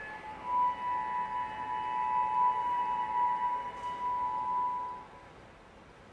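A cello plays sustained notes.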